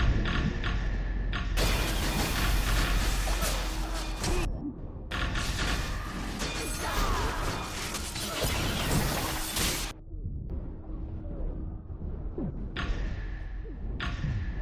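Magic blasts and sword strikes crash and whoosh in a fast fight.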